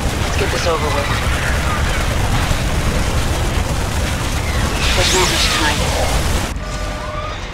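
Gunfire and blasts crackle in a busy battle.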